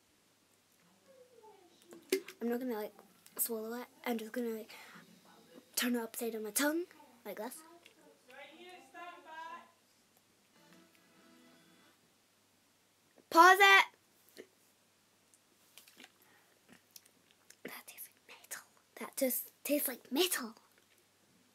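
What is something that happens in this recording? A young girl talks close to the microphone with animation.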